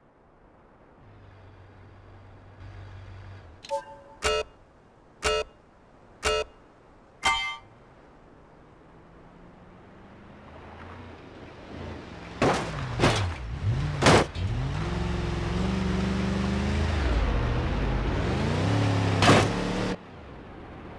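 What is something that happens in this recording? A truck engine idles and then revs up as the truck accelerates.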